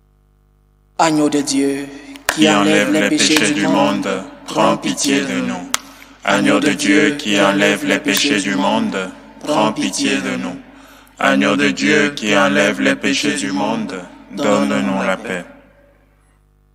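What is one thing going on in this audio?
A man speaks slowly and solemnly into a microphone in an echoing room.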